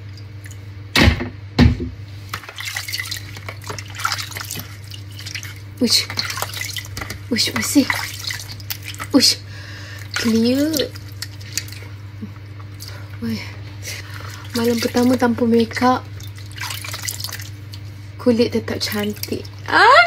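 A young woman speaks close by, between splashes.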